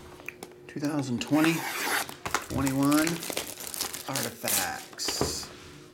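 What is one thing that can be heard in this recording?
Plastic wrap crinkles and tears as it is pulled off a box.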